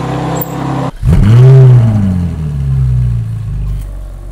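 A sports car engine roars loudly as the car pulls away.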